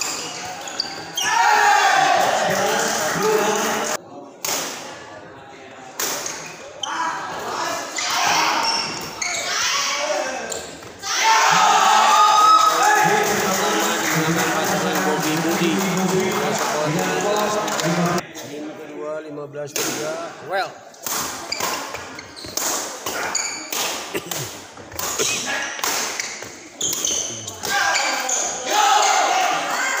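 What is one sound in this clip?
Rackets hit a shuttlecock back and forth with sharp pops.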